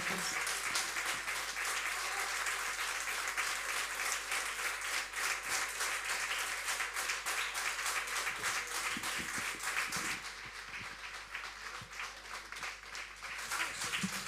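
A crowd applauds steadily with dense clapping.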